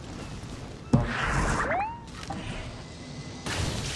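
A magical whoosh sounds as a staff is swung.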